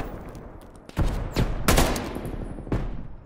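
A rifle fires sharp shots in quick bursts.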